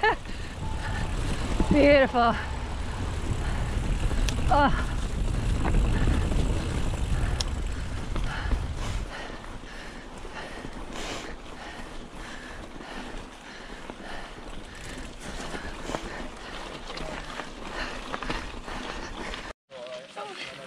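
Bike tyres roll and crunch over a dirt trail.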